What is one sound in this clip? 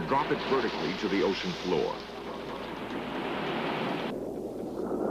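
Rough sea water churns and splashes.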